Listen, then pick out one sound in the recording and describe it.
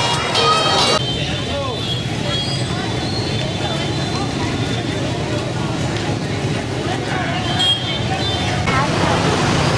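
A crowd of people chatters in a busy outdoor street.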